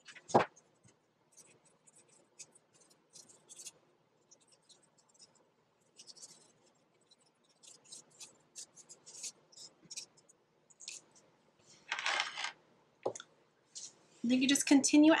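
Paper cutouts rustle and tap softly on a wooden table.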